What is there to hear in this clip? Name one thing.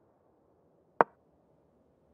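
A chess move sounds with a single sharp click.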